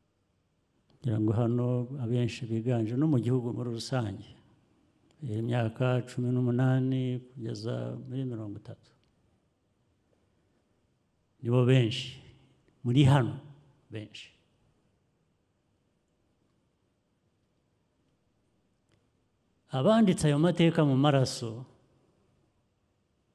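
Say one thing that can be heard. A middle-aged man speaks calmly into a microphone, with long pauses between phrases.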